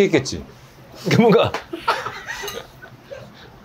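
A young man laughs heartily close by.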